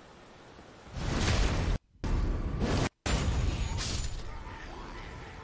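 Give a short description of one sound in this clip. Weapons clash and strike loudly in a fight.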